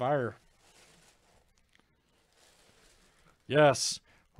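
A plastic bag and a jersey rustle softly as they are handled.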